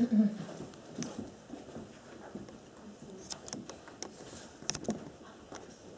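Footsteps cross a hard floor indoors.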